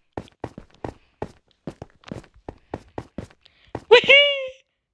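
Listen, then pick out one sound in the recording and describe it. Footsteps tap quickly on hard blocks.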